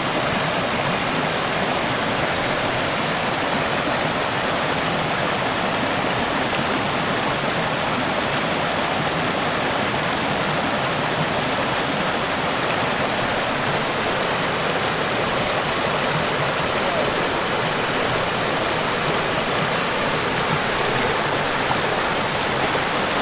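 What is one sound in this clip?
A mountain stream rushes loudly over rocks close by.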